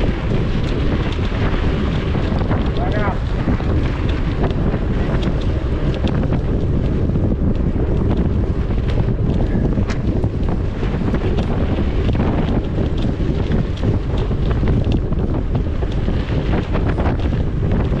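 Bicycle tyres roll and rattle over a bumpy dirt track.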